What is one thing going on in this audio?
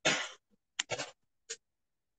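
A pen scratches briefly on paper.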